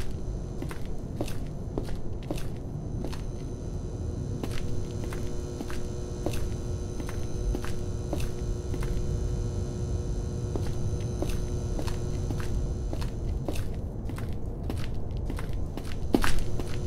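Footsteps walk steadily across a hard, gritty floor.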